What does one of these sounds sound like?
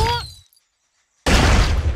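A loud cartoon explosion bursts.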